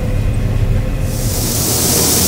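Dry crop stalks crunch and rustle under a harvester.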